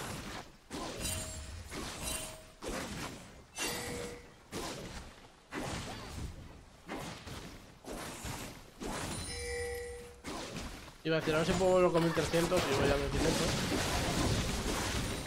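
Game sound effects chime and clash.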